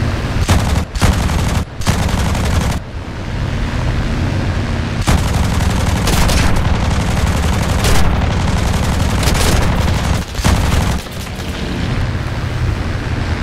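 Explosions boom and roar loudly.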